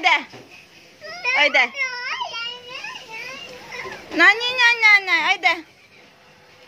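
A small child babbles and squeals in a high voice close by.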